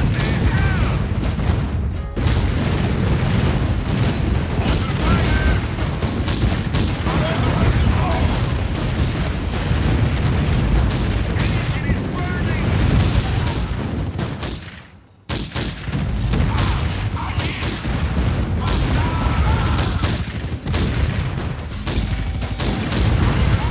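Gun turrets fire rapid shots.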